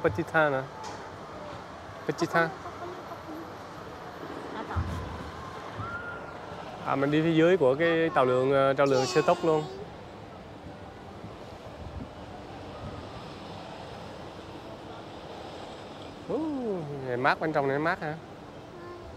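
Young girls talk and call out excitedly close by.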